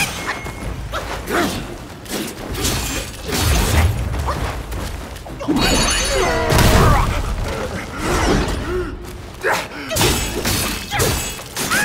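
Swords swish and clash in quick, loud strikes.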